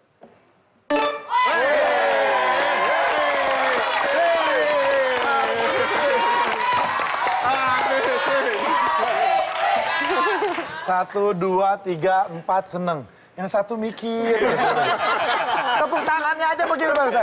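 An audience claps and cheers in a large room.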